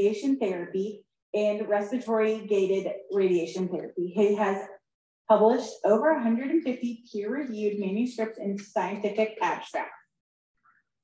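A man speaks calmly through a microphone, as in a lecture.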